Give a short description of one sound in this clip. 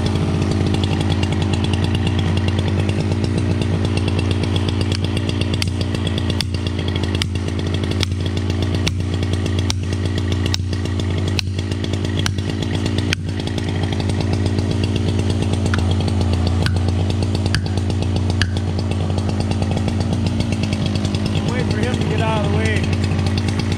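A chainsaw engine idles steadily nearby.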